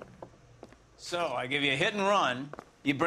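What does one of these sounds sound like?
A man speaks firmly and close by.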